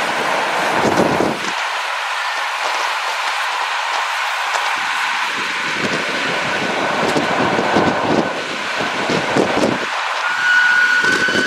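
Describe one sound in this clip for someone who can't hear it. An open train car rattles and clatters steadily along the track.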